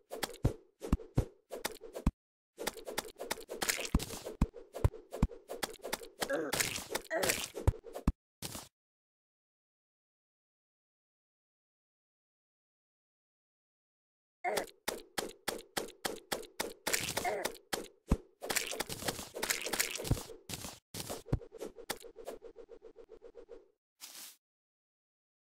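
Quick game sound effects of digging and picking up items click and chime in rapid bursts.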